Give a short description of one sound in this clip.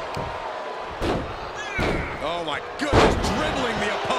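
Bodies slam hard onto a wrestling mat with loud thuds.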